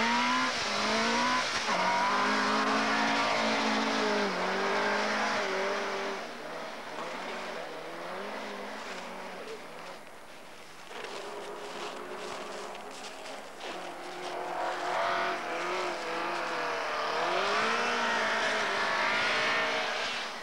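Tyres spray snow as a car slides.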